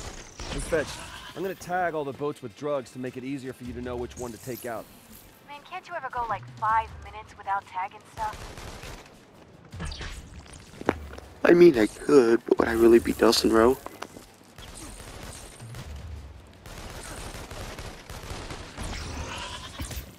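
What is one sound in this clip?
Electric energy blasts crackle and whoosh in bursts.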